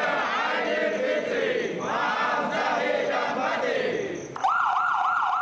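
A group of men shout and cheer together.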